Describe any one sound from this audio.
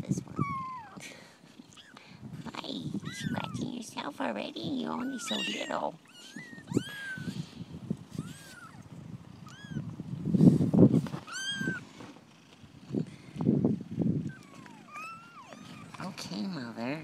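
Newborn puppies squeak and whine in high, short cries.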